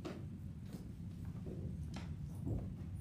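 Footsteps thud on a wooden floor in a large echoing room.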